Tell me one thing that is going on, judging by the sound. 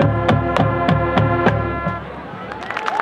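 A brass band plays a loud held chord outdoors.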